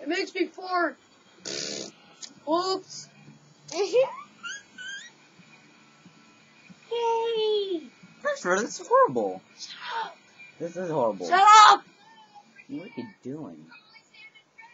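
A teenage boy talks close by, using animated, playful voices.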